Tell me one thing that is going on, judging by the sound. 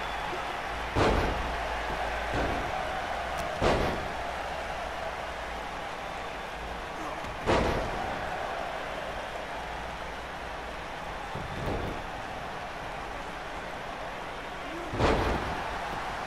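Heavy bodies slam onto a ring mat with loud thuds.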